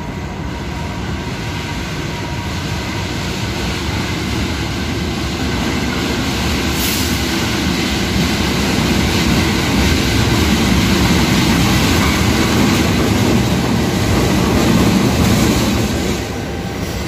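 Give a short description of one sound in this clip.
A diesel locomotive rumbles closer and passes loudly.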